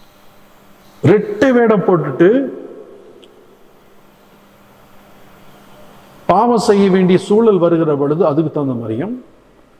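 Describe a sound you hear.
An elderly man speaks with animation into a microphone, with pauses between phrases.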